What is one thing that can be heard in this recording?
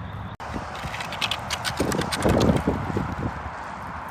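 A stick drags and scrapes along gravel.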